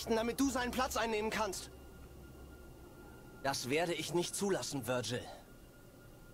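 A young man speaks tensely and close by.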